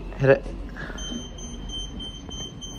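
A high steady electronic tone sounds after a button is pressed.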